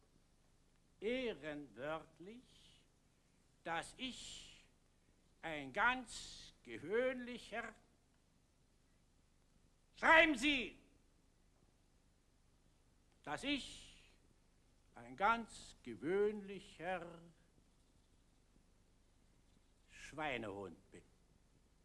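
An elderly man speaks in short, declaiming phrases with pauses between them.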